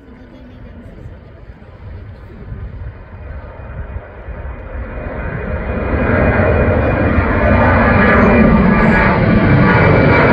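A jet plane takes off with a roar that grows louder.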